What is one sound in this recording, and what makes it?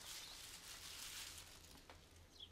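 A shoe squelches as it steps on something soft.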